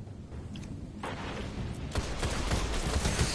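Gunshots fire rapidly in quick bursts.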